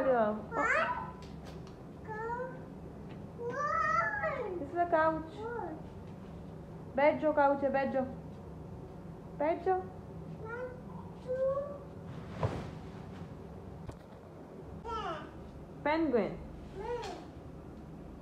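A young child talks and squeals excitedly nearby.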